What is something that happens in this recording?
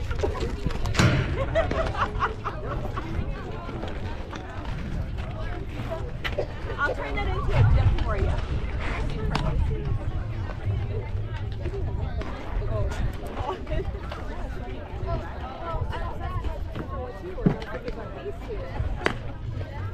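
A softball smacks into a leather glove.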